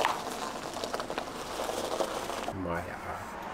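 Tyres roll slowly over gravel.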